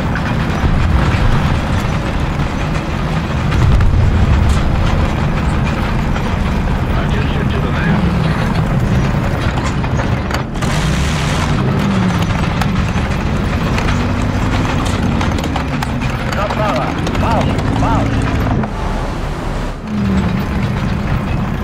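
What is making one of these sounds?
A tank's diesel engine rumbles as it drives.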